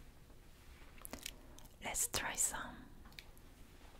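A young woman speaks softly and closely into a microphone.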